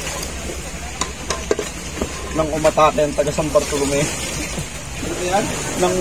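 Metal pots clank against each other.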